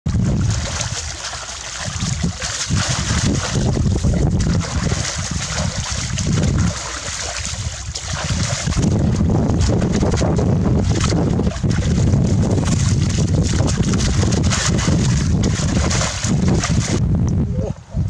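Water splashes and churns close by.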